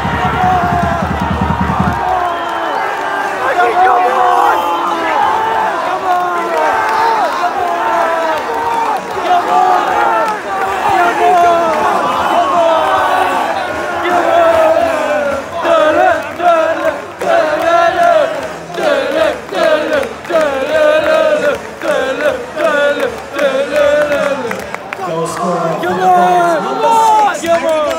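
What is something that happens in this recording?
A large crowd of fans sings together loudly in an open stadium.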